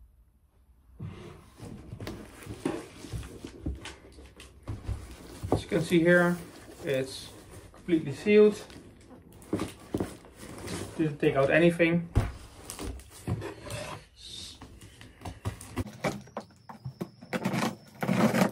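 A cardboard parcel rustles and thumps as it is handled.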